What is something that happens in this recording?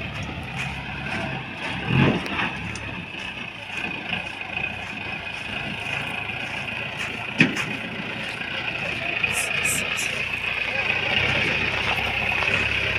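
Tyres crunch on loose gravel.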